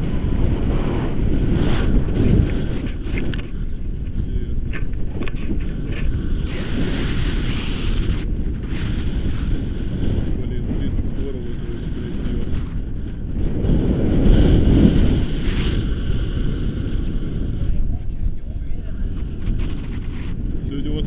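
Wind rushes and buffets the microphone during a paraglider flight.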